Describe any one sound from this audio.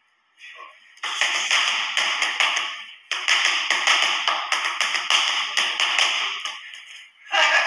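Gloved fists smack against punch mitts in quick bursts.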